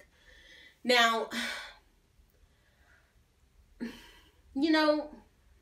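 A young woman speaks expressively close to the microphone, in short bursts.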